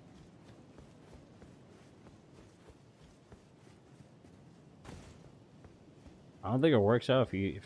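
Footsteps run over stone.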